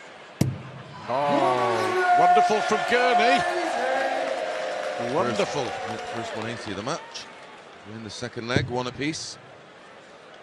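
A crowd cheers and sings loudly.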